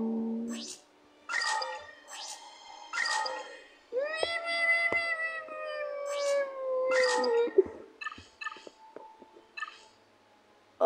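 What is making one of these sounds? Short electronic menu chimes and clicks sound.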